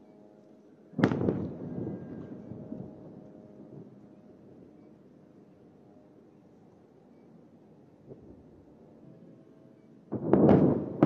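Distant explosions boom over a city and rumble away.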